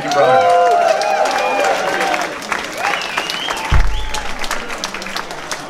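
An audience claps and cheers in a room.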